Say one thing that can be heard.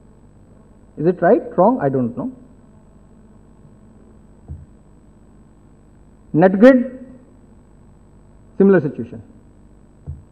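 A middle-aged man speaks slowly and calmly into a microphone, in short bursts with pauses.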